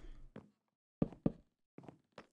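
Wooden blocks knock softly as they are placed.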